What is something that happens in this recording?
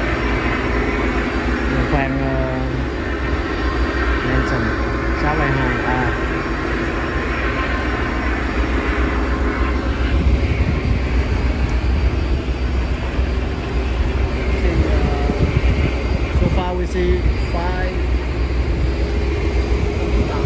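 Boat engines drone steadily.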